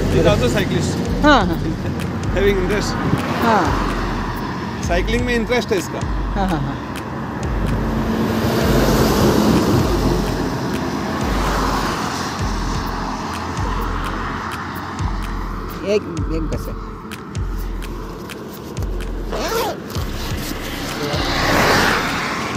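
Traffic rushes past on a highway.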